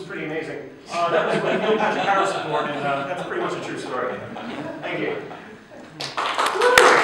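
A man speaks with animation to an audience.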